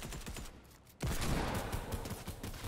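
Gunshots crack from a video game.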